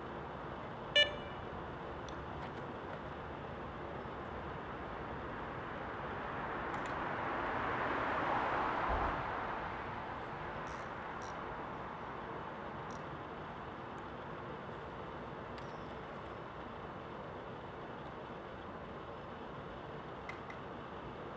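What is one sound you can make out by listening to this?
A fishing rod and its metal rest click softly.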